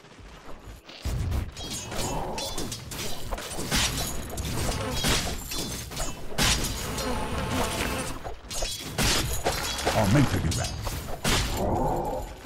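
Game weapons clash and spells burst in a fast fight.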